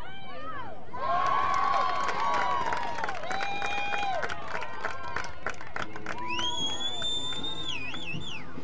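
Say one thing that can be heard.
Young women cheer loudly together.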